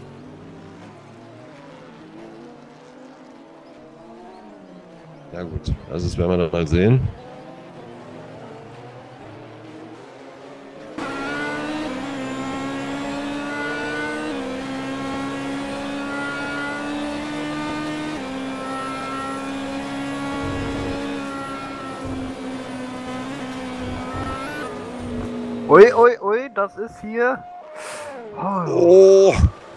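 Racing car engines roar at high revs.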